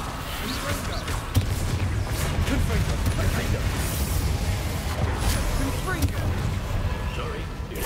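Magic spells crackle and burst in a duel.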